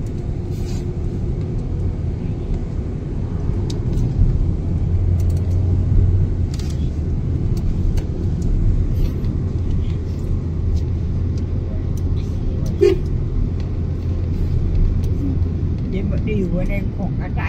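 A car engine hums steadily from inside a moving vehicle.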